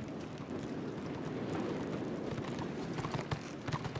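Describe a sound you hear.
A horse trots closer across the ground.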